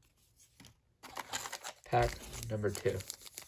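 A foil card pack crinkles in hands.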